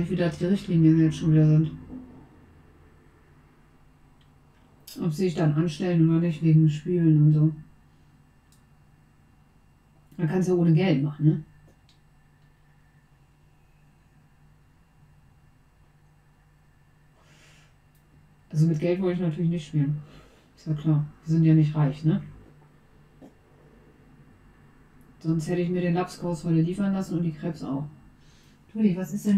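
A young woman talks calmly and close into a microphone, in short bursts with pauses.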